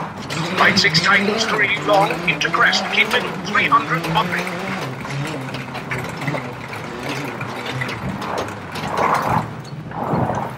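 A rally car engine roars and revs as it speeds along.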